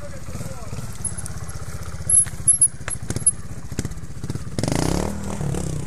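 A motorbike engine chugs steadily close by, then revs louder.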